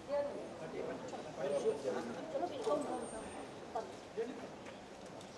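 A middle-aged woman talks animatedly nearby.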